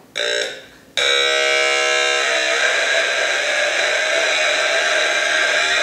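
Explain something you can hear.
A small handheld electronic gadget gives off a loud, steady hiss.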